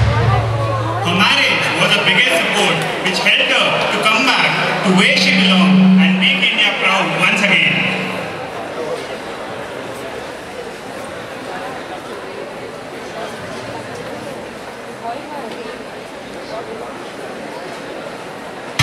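A large crowd murmurs and chatters in an echoing hall.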